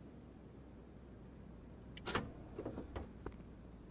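A car bonnet clunks open.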